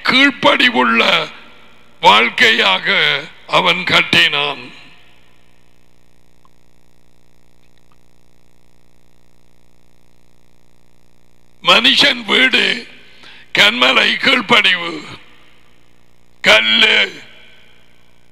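A man speaks calmly and close into a headset microphone.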